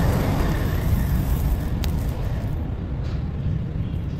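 Molten metal pours and sizzles into sand.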